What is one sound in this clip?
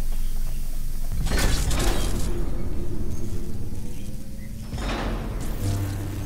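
A heavy armoured vehicle's engine rumbles low.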